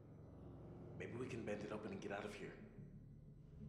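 A young man speaks urgently in a hushed voice.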